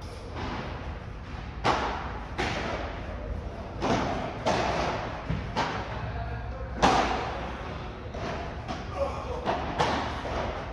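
A ball bounces on a court and off glass walls.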